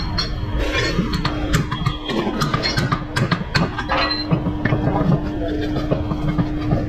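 A pneumatic hammer rattles rapidly against metal.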